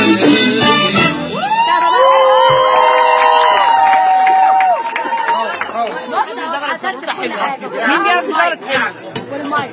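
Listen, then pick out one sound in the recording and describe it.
Young women sing loudly along in a noisy crowd.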